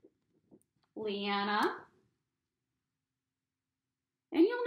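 A woman speaks close by, in an animated way.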